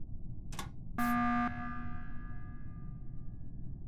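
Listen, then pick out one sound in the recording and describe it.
An emergency alarm blares briefly.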